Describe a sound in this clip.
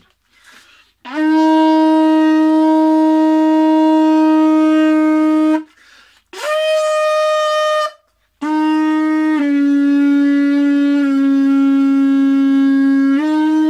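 A man blows a conch shell, sounding long, loud, steady horn notes.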